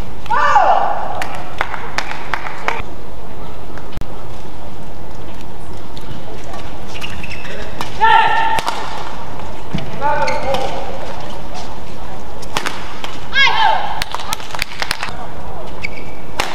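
Rackets smack a shuttlecock back and forth in a quick rally.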